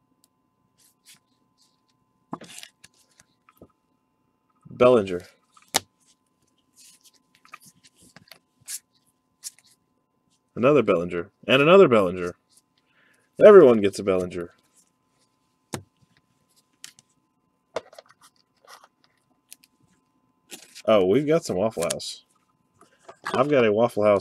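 Plastic card sleeves rustle and crinkle softly.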